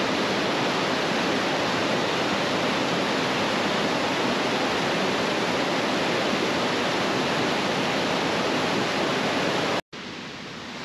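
A mountain stream rushes loudly over rocks close by.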